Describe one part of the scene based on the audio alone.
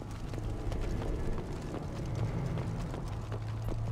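Heavy footsteps crunch over rubble.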